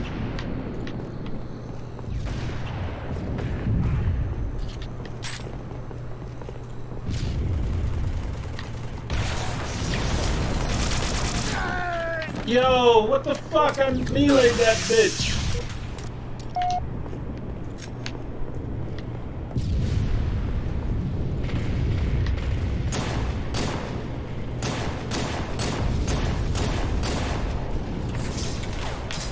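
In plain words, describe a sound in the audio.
Video game gunfire rattles in quick bursts.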